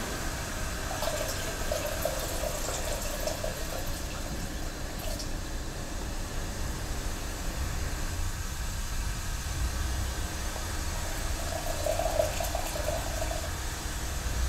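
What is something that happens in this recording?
Water trickles from a ladle into a kettle.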